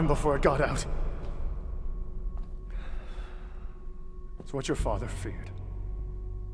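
A man speaks in a low, grave voice.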